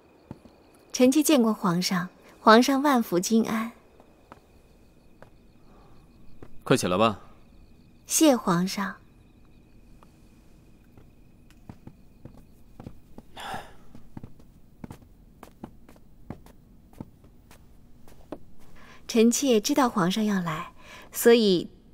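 A young woman speaks softly and formally.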